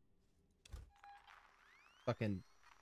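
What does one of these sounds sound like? A motion tracker beeps softly.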